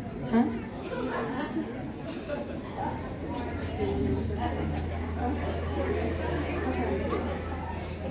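A band plays live music.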